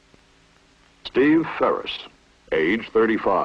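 A man speaks calmly.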